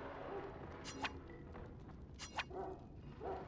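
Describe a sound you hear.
A game menu gives short soft clicks.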